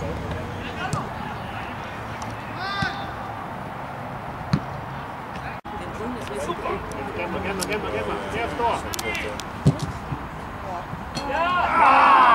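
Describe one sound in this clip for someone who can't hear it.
Players and spectators shout across an open field.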